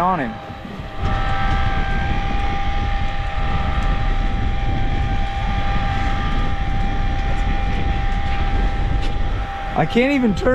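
An electric fishing reel whirs steadily.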